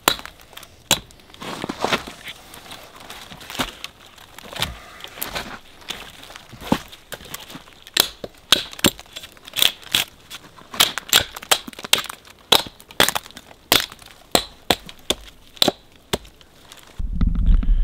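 A hatchet chops repeatedly into a tree trunk with sharp, woody knocks.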